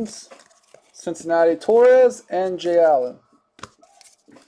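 Trading cards rustle and slide as hands handle them.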